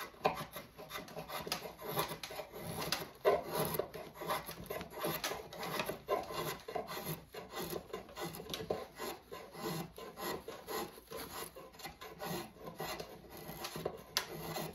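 A drawknife scrapes and shaves wood in quick repeated strokes.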